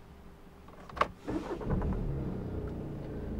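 A car engine starts up.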